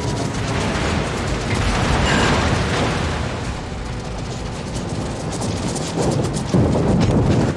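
Shells burst in the air with dull thuds.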